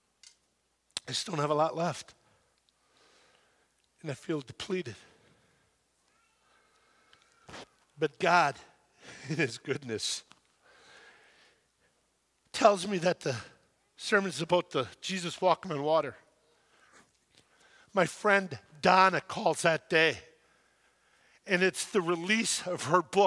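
An older man speaks with animation into a microphone, pausing between phrases.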